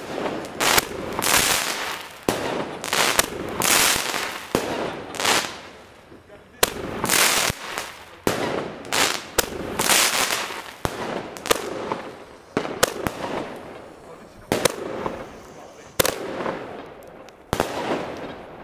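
Fireworks bang and crackle loudly in rapid bursts nearby.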